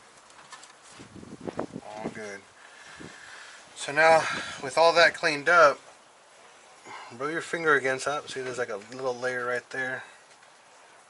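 A man talks close by, calmly explaining.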